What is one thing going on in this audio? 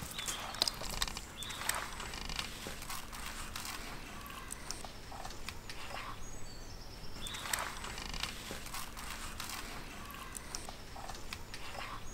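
Hands rub and squelch over wet fish skin.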